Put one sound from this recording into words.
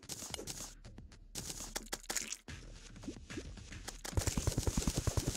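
Short game sound effects of hits and digging click repeatedly.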